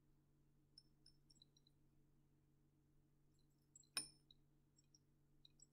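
Drops of liquid drip into a glass flask with small, high plinks.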